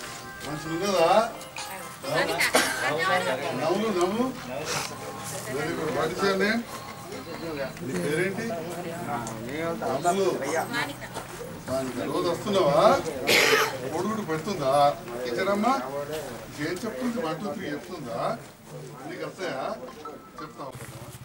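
A man talks with people close by.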